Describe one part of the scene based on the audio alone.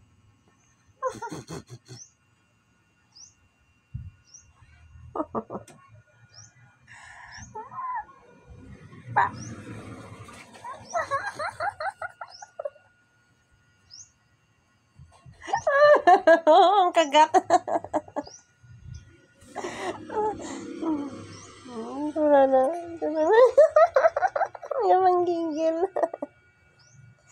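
A young woman talks softly and playfully close by.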